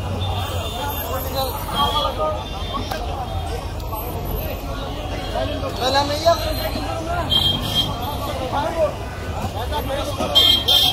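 Several men talk loudly nearby, outdoors.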